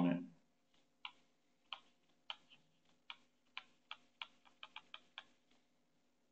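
A pen taps lightly on a tablet.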